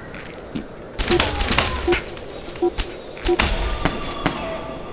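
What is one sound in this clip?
A small explosion bursts with a crackle.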